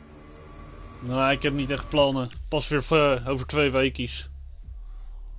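A young man speaks with animation into a microphone, close by.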